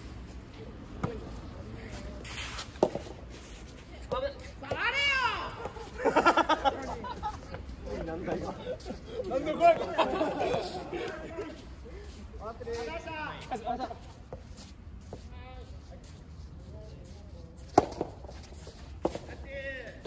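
Tennis balls pop off rackets in sharp hits.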